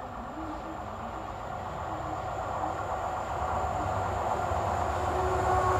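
A train approaches along the tracks, its rumble growing steadily louder.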